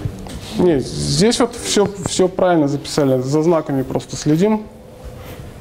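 A young man speaks calmly, lecturing in a room with a slight echo.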